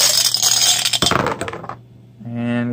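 Dice clatter and tumble across a cardboard tray.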